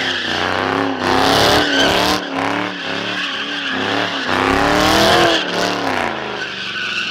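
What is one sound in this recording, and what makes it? Tyres screech as a car spins on asphalt.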